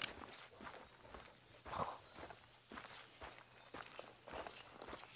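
Footsteps swish through tall grass at a steady walking pace.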